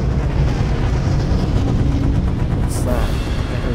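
A blast booms with a deep rumble.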